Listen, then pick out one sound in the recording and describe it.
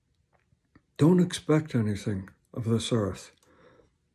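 A middle-aged man speaks calmly and close up.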